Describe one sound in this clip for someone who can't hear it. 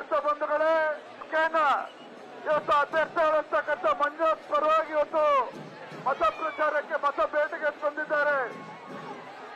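An elderly man speaks forcefully into a microphone, booming through loudspeakers.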